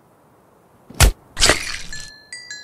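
A blow lands with a sharp thud.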